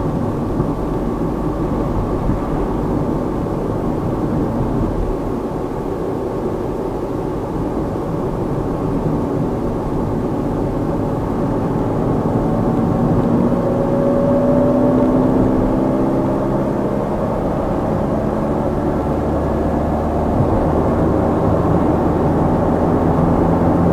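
Tyres rumble steadily on an asphalt road.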